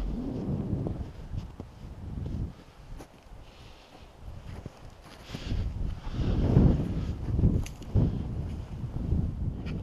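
Boots crunch on snow underfoot.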